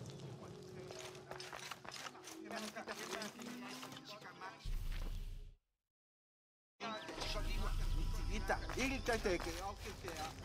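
Footsteps pad across stone and grass.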